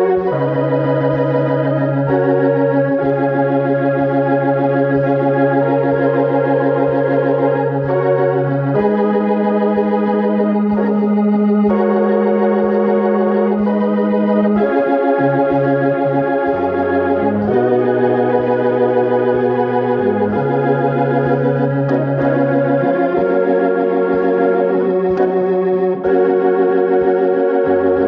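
A keyboard plays sustained chords with a steady bass line, close by.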